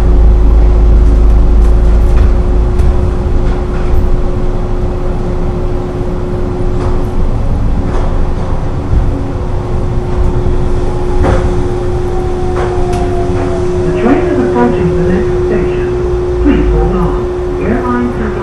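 A train hums and rumbles steadily along a track.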